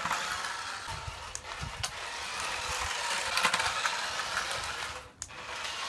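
A small toy car's electric motor whirs as the car speeds across concrete.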